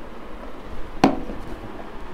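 A plastic bottle knocks on a table.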